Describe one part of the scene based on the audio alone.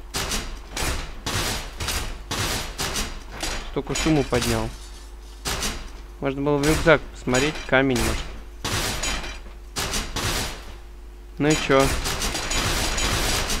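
A chain-link gate rattles as a hand shakes it.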